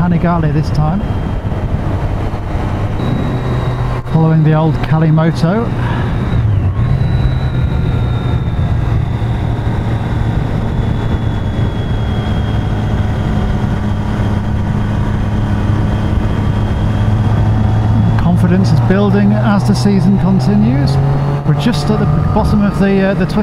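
A motorcycle engine hums while cruising at a steady speed.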